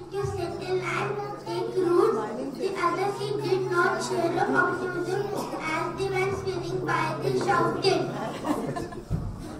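Young children sing together through a loudspeaker in a large hall.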